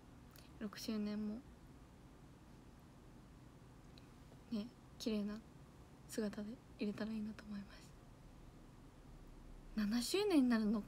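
A young woman speaks softly and casually into a nearby microphone, in short bursts.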